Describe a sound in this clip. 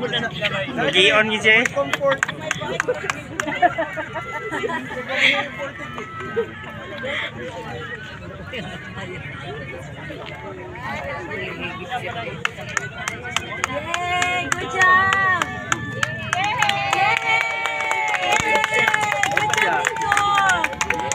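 A crowd cheers and shouts in the distance outdoors.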